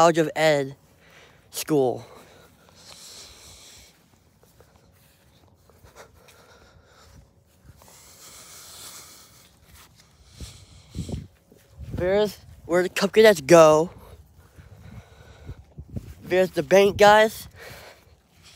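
A young man speaks close to the microphone in short bursts.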